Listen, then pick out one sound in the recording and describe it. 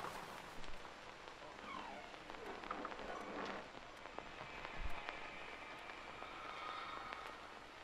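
A wooden door creaks slowly open.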